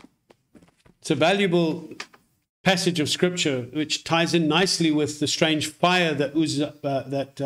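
A middle-aged man speaks calmly and close to a microphone, as if on an online call.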